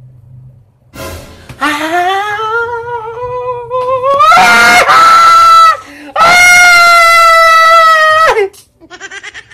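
A man screams loudly in a high, rising voice.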